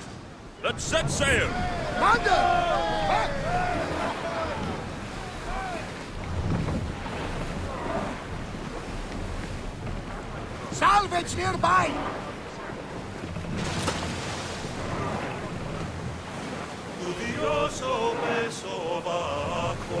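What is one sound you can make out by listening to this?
Water splashes against a moving ship's hull.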